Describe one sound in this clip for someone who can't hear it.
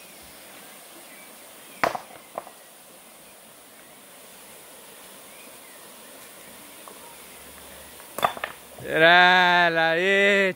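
Shallow water trickles steadily over stones.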